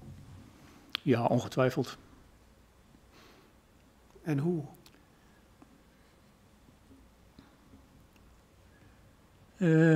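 An older man speaks calmly into a microphone, with long pauses.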